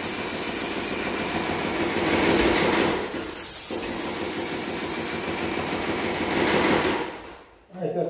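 A paint sprayer hisses loudly in long bursts.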